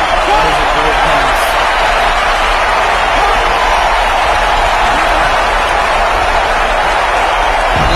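A large crowd roars steadily in a big open stadium.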